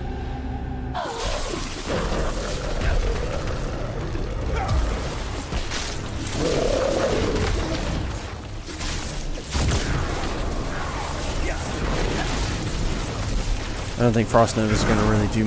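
Lightning spells crackle and blast in a fast fight.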